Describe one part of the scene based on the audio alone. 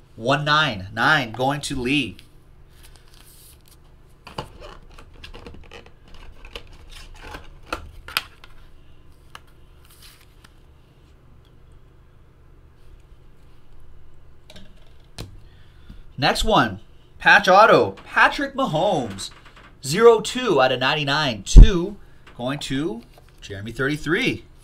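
Cards and plastic sleeves rustle and tap in handling.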